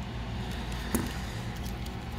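A plastic casing clicks as it is pried apart.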